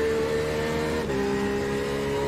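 A racing car engine briefly dips in pitch during a gear shift.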